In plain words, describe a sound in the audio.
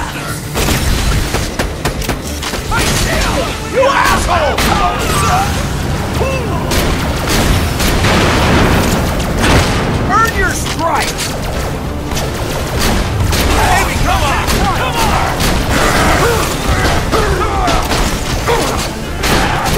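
Energy blasts crackle and explode.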